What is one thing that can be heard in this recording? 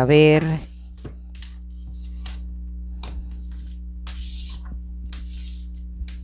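Playing cards shuffle and slide softly against each other.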